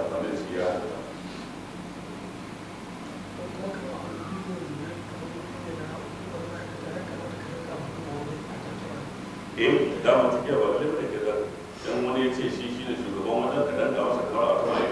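An elderly man speaks calmly into a microphone, heard through a loudspeaker in an echoing room.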